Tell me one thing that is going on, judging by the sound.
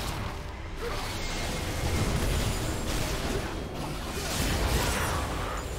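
Spell effects whoosh and crackle in a fast game battle.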